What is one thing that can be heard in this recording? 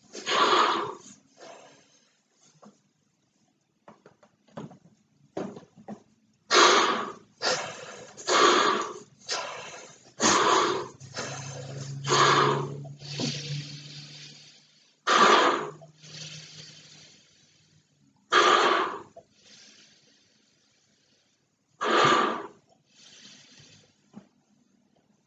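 A man blows hard into a large balloon in short, forceful breaths.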